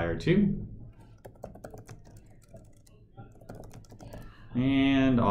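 Keys click on a keyboard.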